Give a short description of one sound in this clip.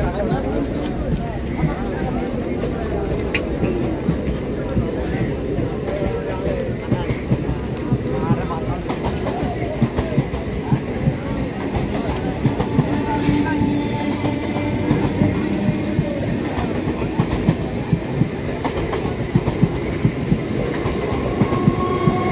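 Men chatter around a busy platform.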